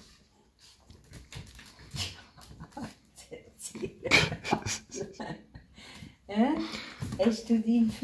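A puppy's paws scrabble and rustle on soft bedding.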